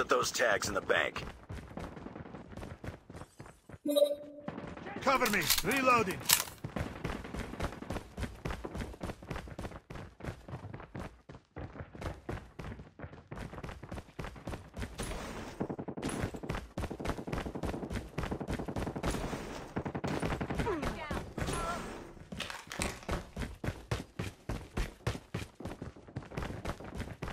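Footsteps run quickly and steadily over hard ground.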